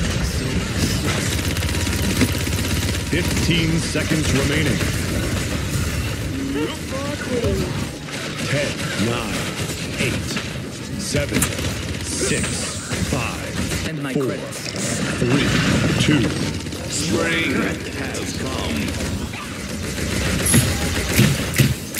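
Game weapons fire in rapid bursts with crackling blasts.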